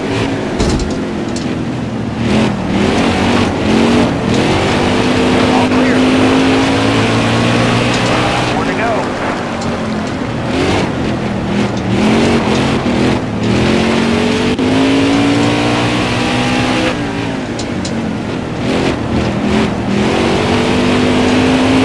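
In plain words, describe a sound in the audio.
Tyres skid on dirt as cars slide through turns.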